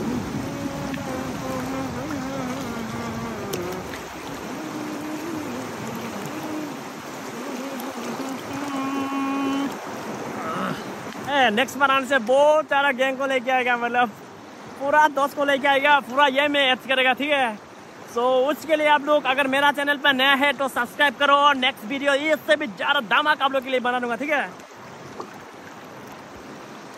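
A river rushes and splashes steadily nearby.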